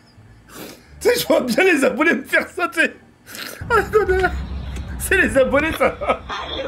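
A young man speaks excitedly close to a microphone.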